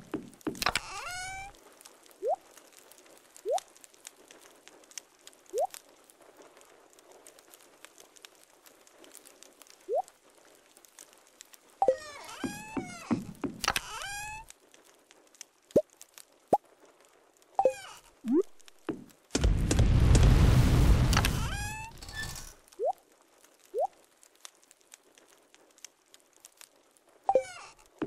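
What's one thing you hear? Bright chiming menu sounds play as a game chest opens and closes.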